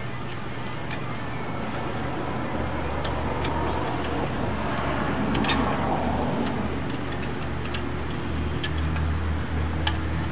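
Metal brake parts clink and rattle as hands fit them onto a drum.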